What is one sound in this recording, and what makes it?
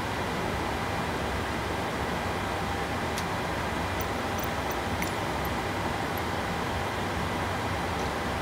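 A steady low hum of an idling airliner drones on.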